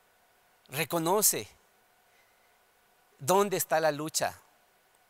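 A man speaks calmly into a microphone, in two short phrases with a pause between.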